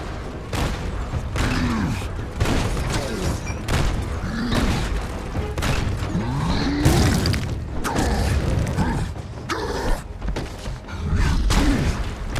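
Heavy punches thud and crash with deep booms.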